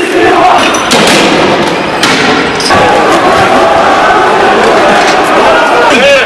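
A crowd shouts and clamours outdoors.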